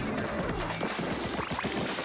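A loud burst explodes with a splash.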